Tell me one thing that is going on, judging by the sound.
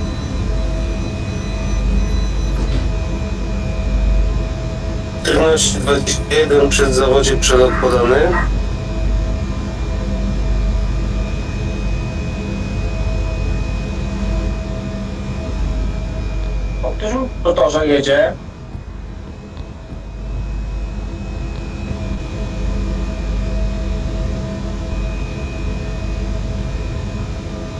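An electric train hums steadily at low pitch.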